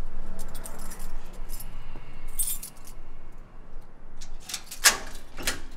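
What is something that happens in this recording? A metal gate rattles and clicks as a key turns in its lock.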